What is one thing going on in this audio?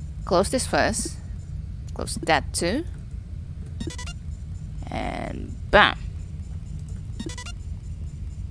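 Electronic game sound effects chirp and blip in short bursts.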